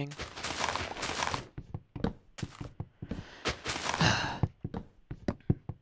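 Leaf blocks crunch as they are broken in a video game.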